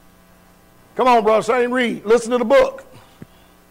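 A man preaches loudly through a microphone in an echoing hall.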